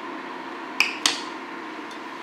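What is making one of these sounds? A glass pot lid clinks against a metal pot.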